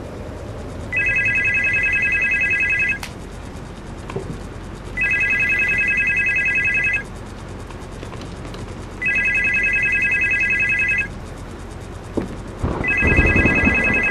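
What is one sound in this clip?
A desk telephone rings in repeated bursts.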